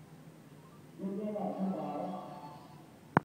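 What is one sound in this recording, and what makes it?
A phone's ringing tone sounds faintly through its small speaker.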